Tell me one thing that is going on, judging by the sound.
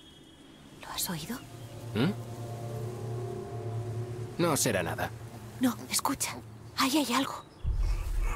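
A young woman speaks in a hushed, tense voice.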